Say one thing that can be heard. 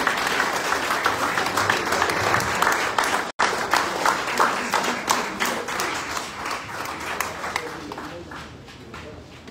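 A crowd applauds loudly, then the clapping fades.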